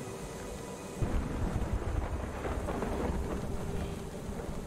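Thunder rumbles loudly nearby.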